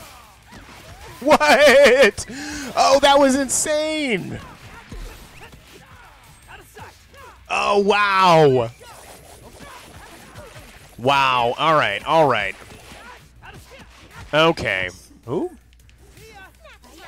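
Punches and kicks land with sharp, rapid smacks.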